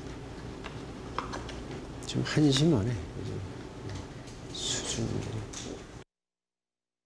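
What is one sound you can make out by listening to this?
An elderly man speaks quietly and calmly, close by.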